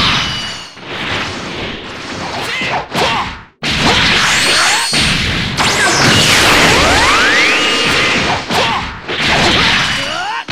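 Energy blasts whoosh and roar in bursts.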